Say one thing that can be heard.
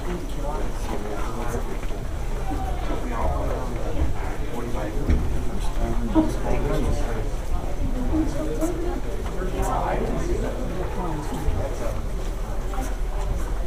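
A crowd of men murmurs and chatters nearby in an echoing passage.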